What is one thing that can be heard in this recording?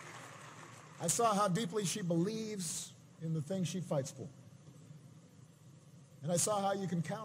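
A man speaks with emphasis through a microphone and loudspeakers in a large echoing space.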